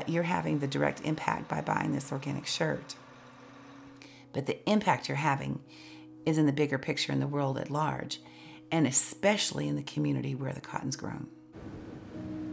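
A middle-aged woman speaks calmly and with animation, close by.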